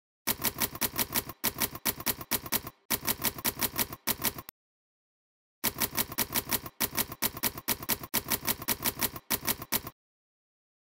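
Typewriter keys clack in quick bursts.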